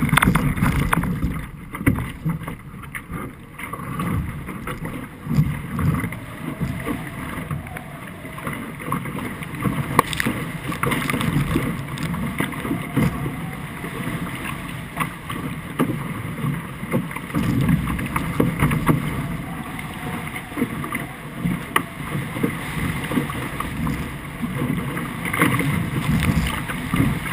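Water splashes and rushes against a boat's hull.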